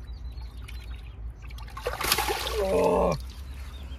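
Water splashes as a fish is released.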